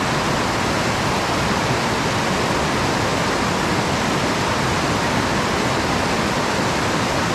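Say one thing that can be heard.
River rapids rush and roar loudly over rocks, close by.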